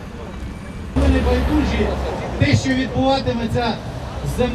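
A man speaks loudly outdoors.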